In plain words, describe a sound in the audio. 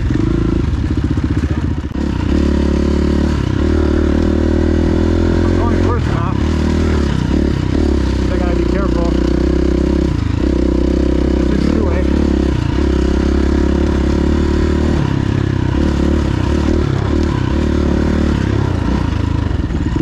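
A dirt bike engine revs loudly up close, rising and falling as it rides.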